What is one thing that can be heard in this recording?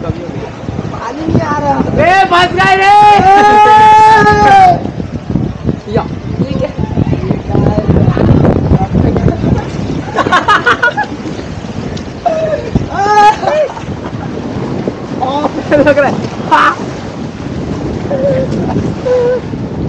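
Water rushes and splashes under a raft sliding down a slide.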